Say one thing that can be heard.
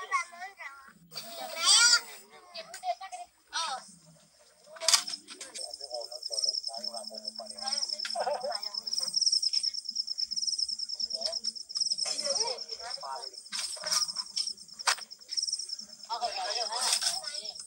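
Young children talk and chatter close by.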